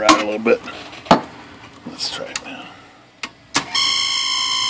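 A machine clicks and clacks a few times.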